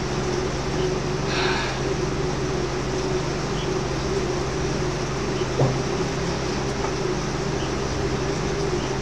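A man breathes heavily close to a microphone.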